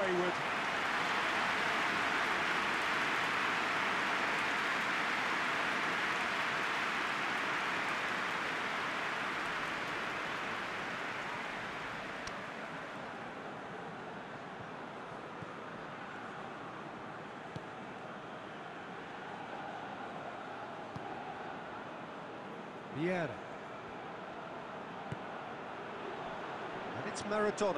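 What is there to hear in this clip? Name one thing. A large stadium crowd roars and cheers steadily, then quietens.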